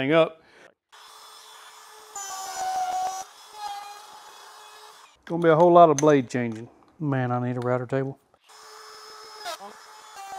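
A power router whirs steadily.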